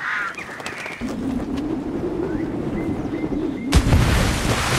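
Wind rushes past during a long fall.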